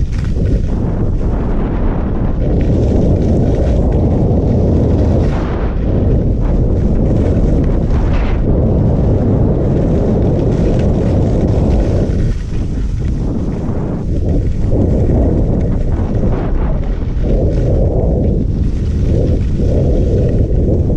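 Skis scrape and hiss over the snow.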